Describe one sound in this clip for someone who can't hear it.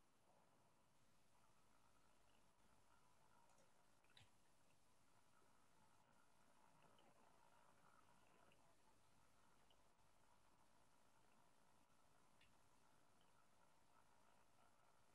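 A man speaks quietly over an online call.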